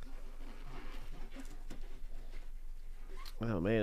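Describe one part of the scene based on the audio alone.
A cardboard box rustles and scrapes as a hand turns it.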